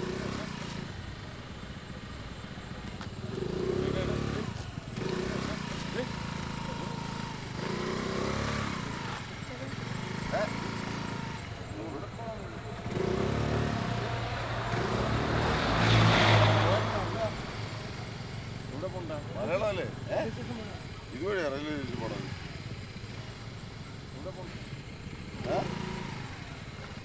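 A scooter engine idles steadily.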